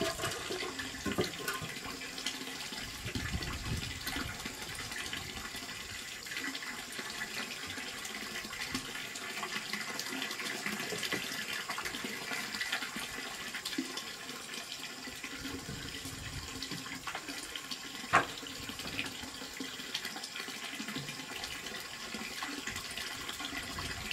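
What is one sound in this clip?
A trowel scrapes mortar into the gaps of a brick wall.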